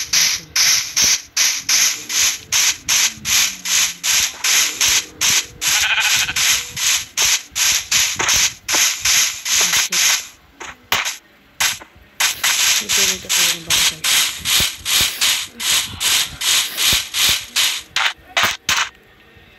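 Footsteps fall on grass in a steady walking rhythm.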